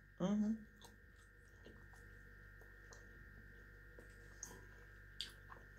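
A middle-aged woman chews food with soft smacking sounds.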